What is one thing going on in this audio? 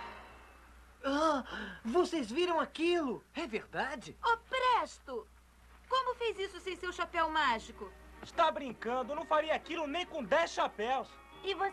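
A young woman speaks with surprise and urgency, close by.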